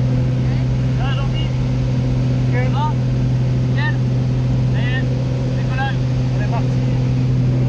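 A young man shouts excitedly over the engine noise.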